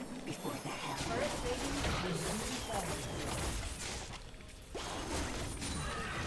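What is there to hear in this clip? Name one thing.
Magical spell effects whoosh and crash in a fight.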